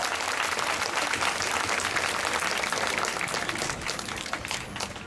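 A marching band plays brass and percussion outdoors across a wide field.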